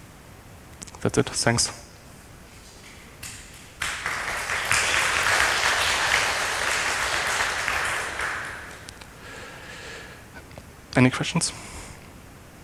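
A young man speaks briefly through a microphone.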